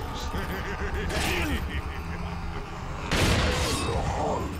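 A shotgun fires loudly in a room.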